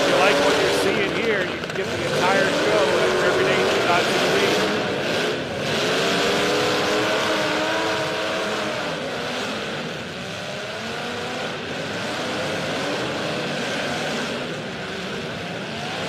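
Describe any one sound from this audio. Car engines roar and rev loudly.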